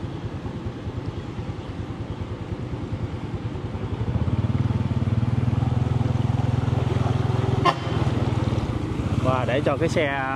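Water sloshes and splashes around wheels.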